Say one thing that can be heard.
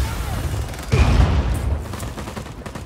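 A large explosion booms and roars.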